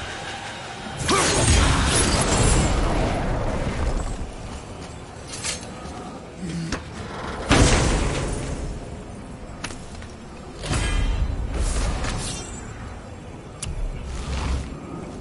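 A magical energy whooshes and hums.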